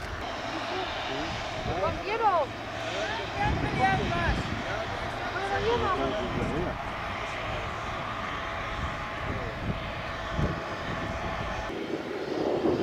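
A tow tractor's engine hums steadily in the distance.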